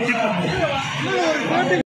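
A large crowd chatters and shouts nearby.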